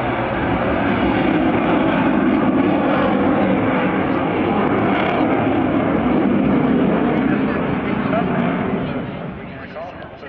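Wind rumbles loudly across the microphone outdoors.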